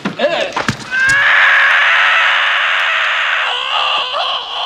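A man screams loudly in terror.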